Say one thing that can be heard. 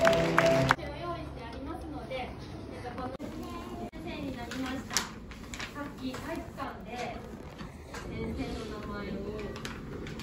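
A woman speaks calmly to a room.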